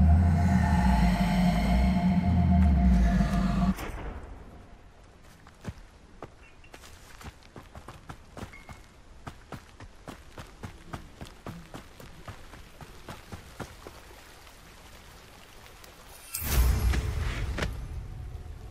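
Keyboard keys click as they are pressed.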